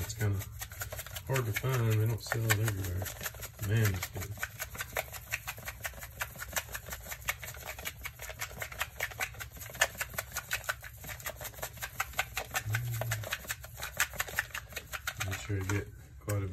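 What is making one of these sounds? A spice shaker rattles in quick, even shakes.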